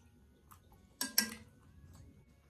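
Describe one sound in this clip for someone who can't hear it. A bowl knocks on a hard surface.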